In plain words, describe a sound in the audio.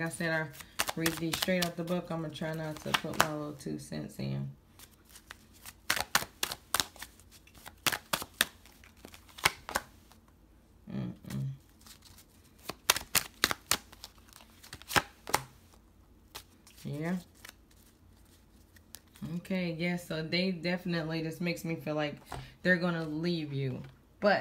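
Playing cards riffle and slap as they are shuffled by hand.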